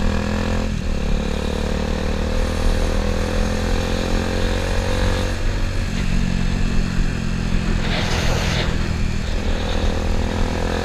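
A motorcycle engine hums steadily, shifting pitch as it rides along.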